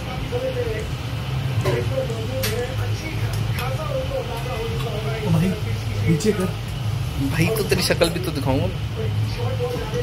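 A spoon scrapes and taps in a metal bowl.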